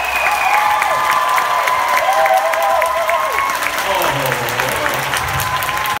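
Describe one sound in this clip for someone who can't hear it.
Singers on stage sing together.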